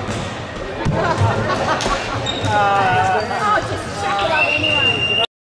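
Spectators cheer and shout near the court.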